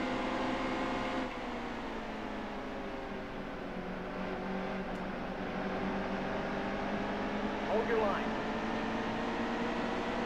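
Race car engines roar at high speed.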